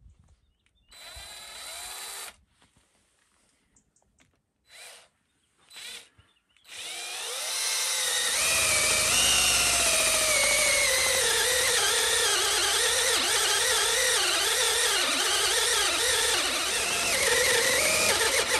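A cordless drill whirs in short bursts, then runs steadily with a whining pitch that sags and wavers as it bores into wood.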